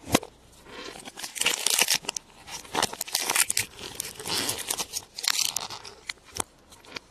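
Foil crinkles as it is peeled off a chocolate egg.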